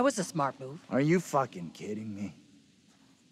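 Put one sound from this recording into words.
A man shouts in disbelief.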